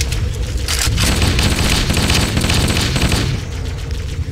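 An assault rifle fires rapid bursts.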